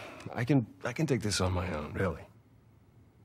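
A man speaks hesitantly, close by.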